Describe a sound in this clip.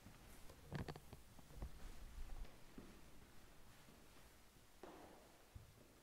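Footsteps tread softly across the floor.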